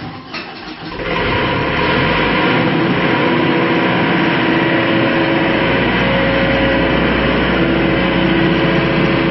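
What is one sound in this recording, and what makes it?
A diesel generator engine runs with a steady, loud roar.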